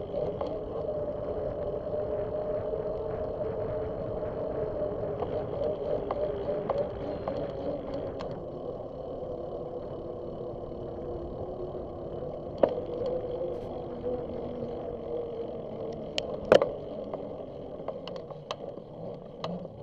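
Tyres roll steadily on a paved path.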